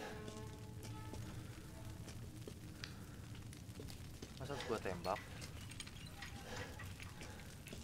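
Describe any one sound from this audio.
A fire crackles softly in a hanging brazier.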